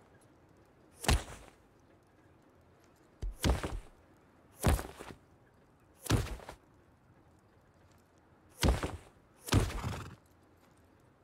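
Water splashes out in short, sharp bursts.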